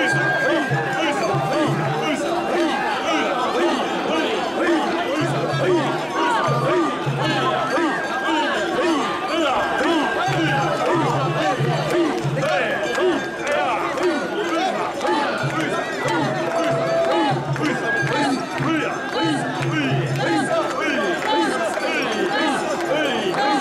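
A large crowd of men chants loudly in rhythm, close by.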